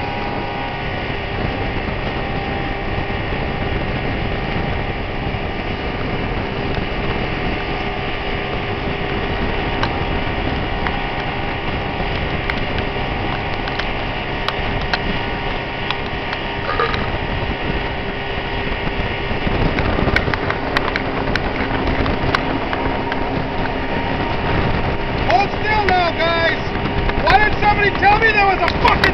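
Water rushes and splashes behind a speeding boat.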